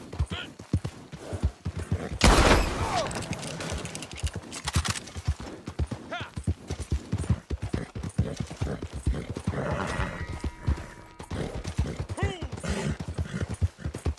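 A horse gallops with steady thudding hoofbeats.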